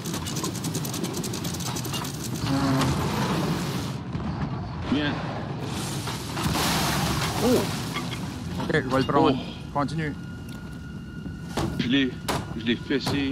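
Stormy waves crash and roar against a ship.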